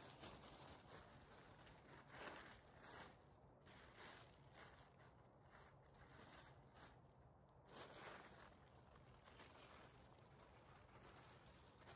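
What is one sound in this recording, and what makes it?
A plastic tarp rustles and crinkles softly.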